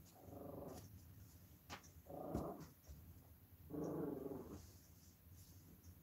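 Soft vinyl doll parts bump and tap on a table.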